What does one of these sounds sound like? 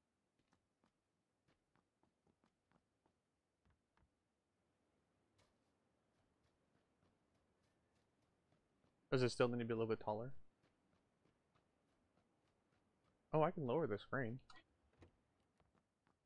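Footsteps run quickly over grass and hard ground.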